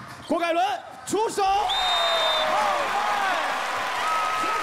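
A young man cheers with excitement.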